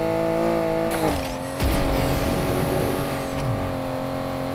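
Tyres screech as a car skids through a turn.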